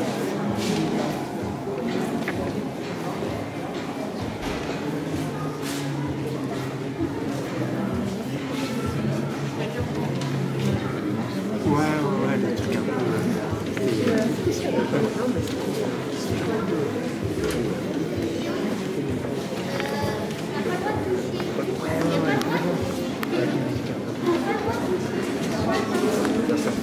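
A crowd of men and women chatters nearby throughout.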